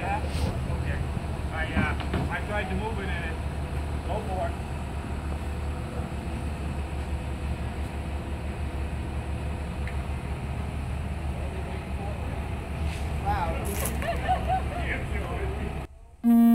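Men talk outdoors at a distance.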